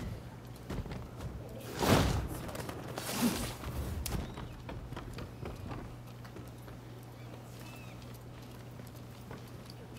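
Footsteps thud on roof tiles.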